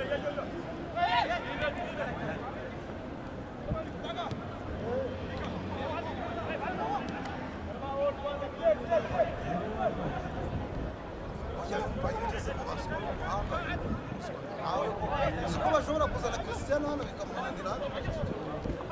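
A stadium crowd chatters and calls out in the distance.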